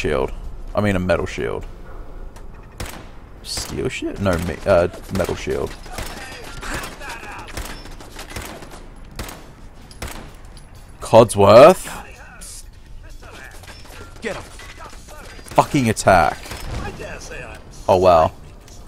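Gunshots ring out in short bursts, with a metallic echo.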